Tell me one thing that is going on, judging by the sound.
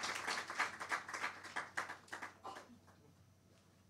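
An audience applauds in a large hall, then the clapping fades away.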